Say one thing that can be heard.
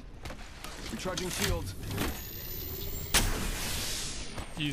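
A shield battery charges with a rising electric whir.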